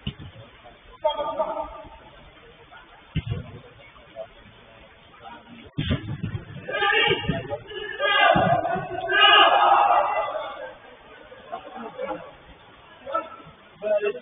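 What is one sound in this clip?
Men shout to each other across an echoing indoor pitch.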